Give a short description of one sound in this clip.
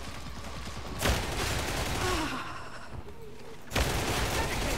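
Loud gunshots ring out nearby.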